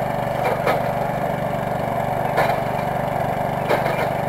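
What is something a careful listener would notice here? A diesel backhoe loader's engine runs.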